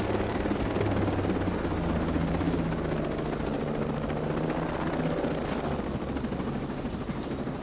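A helicopter's rotor thumps as the helicopter flies low.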